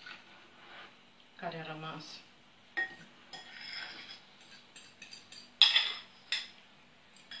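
A spoon clinks against a glass bowl.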